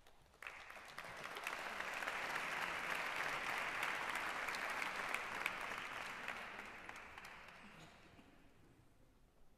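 An audience applauds in a large echoing hall, then the clapping fades away.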